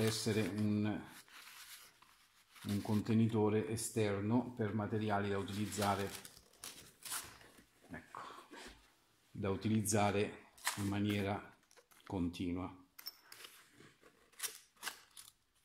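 Paper maps rustle as they are slid into a fabric case.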